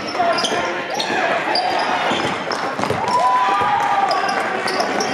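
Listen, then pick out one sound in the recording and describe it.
A basketball bounces on a hard floor in an echoing gym.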